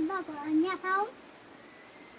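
A young boy speaks briefly and brightly.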